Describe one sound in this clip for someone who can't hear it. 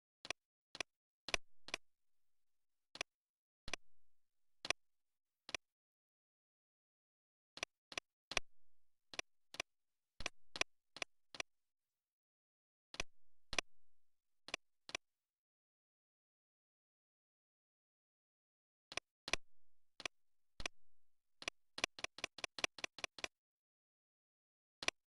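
Short sharp clicks sound in irregular bursts, sometimes in quick runs.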